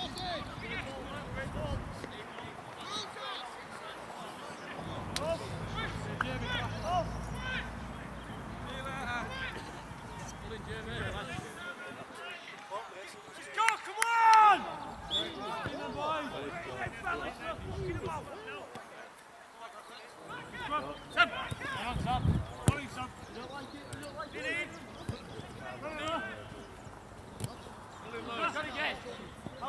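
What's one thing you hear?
Men shout and call to each other across an open field.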